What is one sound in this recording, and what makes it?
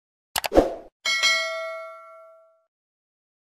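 A bell chimes and rings out.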